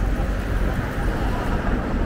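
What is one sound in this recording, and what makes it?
A motorcycle rides past.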